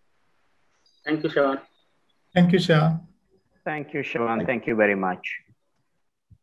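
A man speaks with animation into a microphone over an online call.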